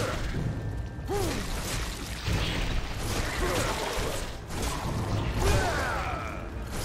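Magic blasts crackle and burst during a fight.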